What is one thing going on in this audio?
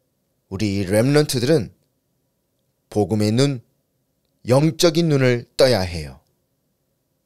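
A man shouts angrily and loudly.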